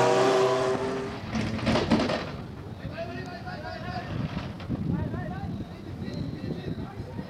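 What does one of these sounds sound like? Tyres roll slowly on tarmac.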